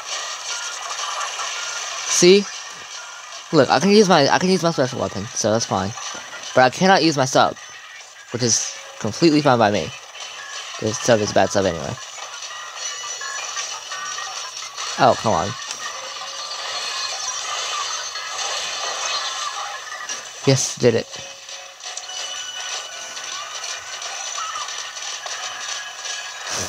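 Upbeat game music plays through a small handheld speaker.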